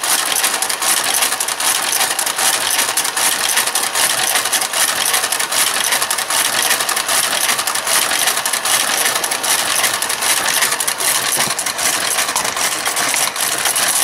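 A knitting machine carriage slides along the needle bed with a steady clattering whir.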